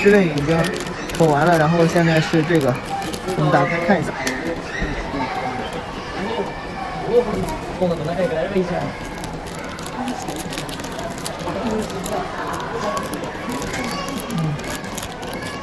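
A plastic wrapper crinkles and rustles close by.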